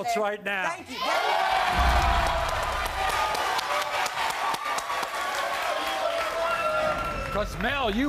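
A studio audience claps.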